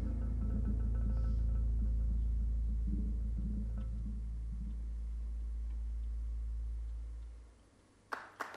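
Soft mallets strike a marimba, and low notes ring and slowly fade.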